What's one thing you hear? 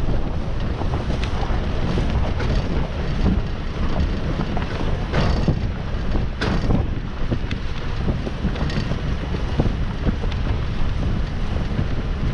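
A vehicle engine rumbles steadily at low speed.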